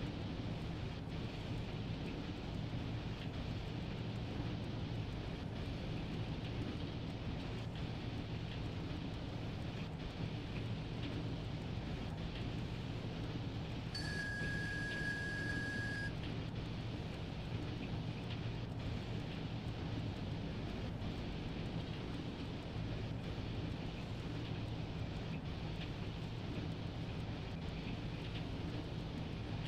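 Train wheels click over rail joints at uneven intervals.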